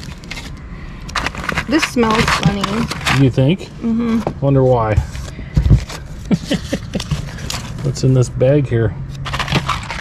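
Hands rummage through rustling items in a cardboard box.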